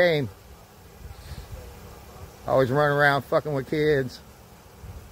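A man speaks nearby outdoors in short bursts.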